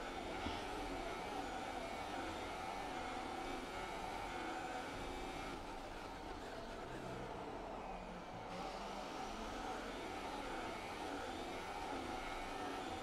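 A racing car engine roars steadily, rising and falling in pitch with gear changes.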